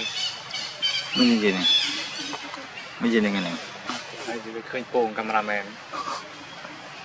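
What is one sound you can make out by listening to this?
A monkey grunts and squeals close by.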